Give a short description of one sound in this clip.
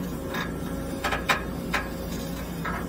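Metal parts of a digger clank and knock.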